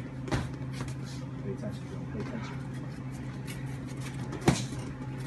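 Boxing gloves thump against each other in quick punches.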